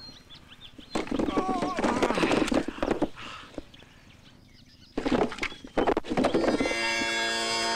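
Wooden logs tumble and clatter as a stack collapses.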